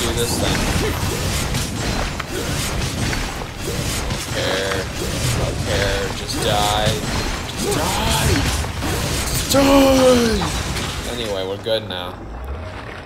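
Blades swish and slash through the air.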